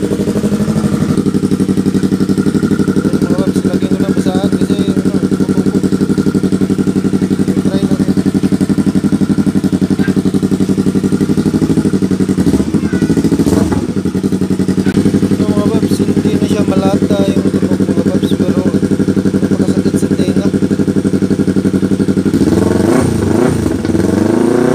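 A motorcycle engine idles close by with a deep, steady, rapid burble.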